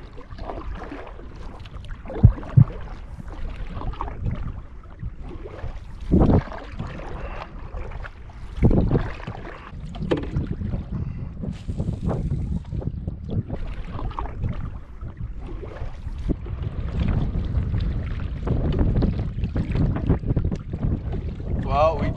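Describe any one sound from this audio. Wind blows across open water, rumbling against the microphone.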